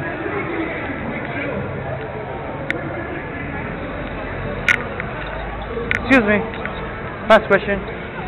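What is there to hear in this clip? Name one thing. A crowd chatters nearby outdoors.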